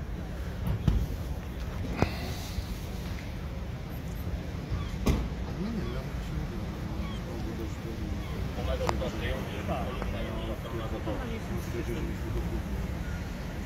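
Another man answers calmly nearby.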